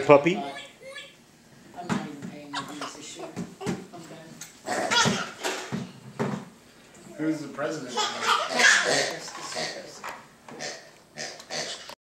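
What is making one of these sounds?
A toddler babbles and squeals close by.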